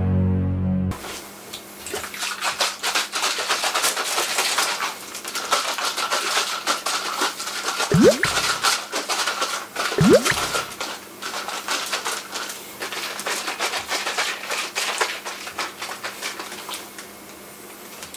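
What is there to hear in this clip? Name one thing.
A shaker rattles as it is shaken hard and fast.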